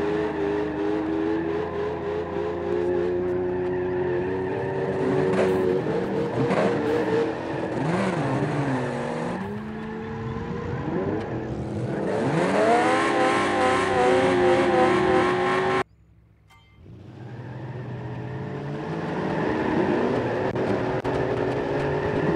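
A car engine revs hard and its pitch rises and falls.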